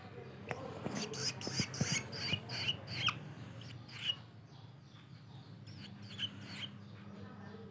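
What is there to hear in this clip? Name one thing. Shrike nestlings chirp, begging for food.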